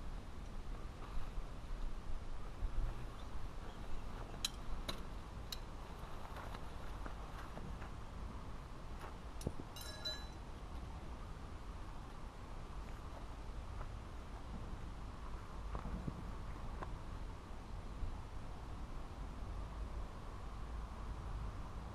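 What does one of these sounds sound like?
Wind blows steadily outdoors, rumbling.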